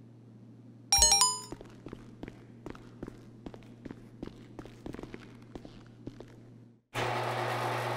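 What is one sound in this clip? Footsteps tap on a hard, echoing floor.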